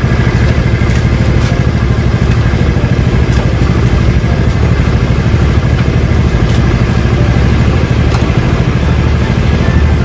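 A scooter engine idles with a steady low rumble close by.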